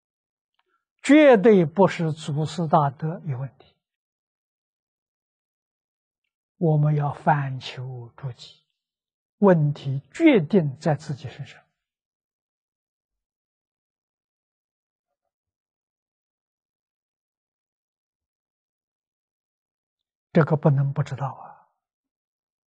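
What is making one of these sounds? An elderly man speaks calmly into a clip-on microphone, with long pauses.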